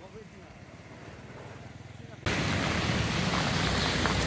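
Motorcycles ride past on a wet road.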